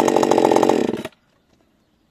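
A chainsaw engine stops abruptly.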